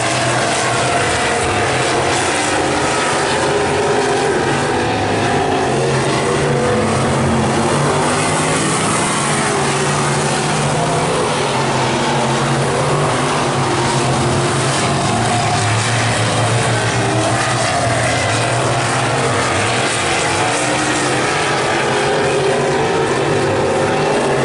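Race car engines roar and drone loudly around a dirt track outdoors.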